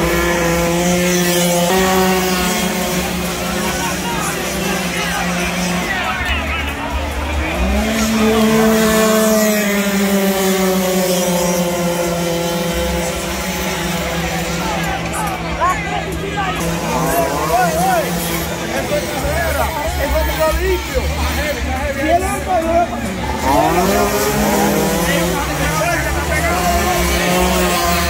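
A small motorbike engine revs loudly, rising and falling in pitch.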